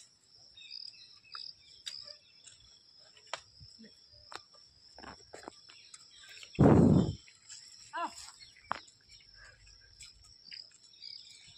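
Cows tear and munch grass close by.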